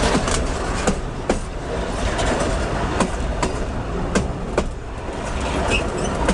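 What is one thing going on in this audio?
A train rumbles loudly overhead, passing very close.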